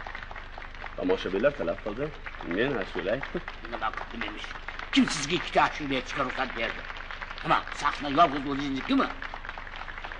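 An older man talks with animation close by.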